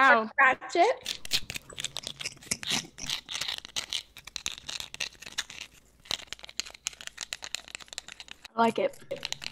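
Crisp snacks crunch loudly close to a microphone.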